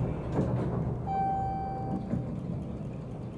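An elevator chime dings once.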